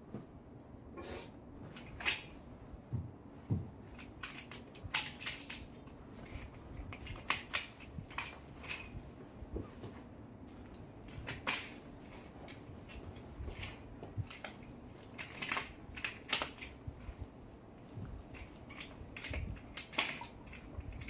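Curtain hooks click and clatter against a ceiling rail.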